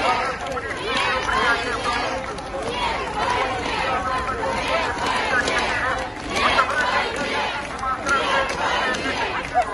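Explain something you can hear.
An elderly woman speaks with agitation close by.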